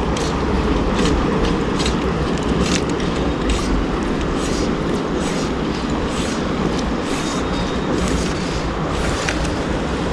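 A fly fishing line rasps as it is pulled through the fingers.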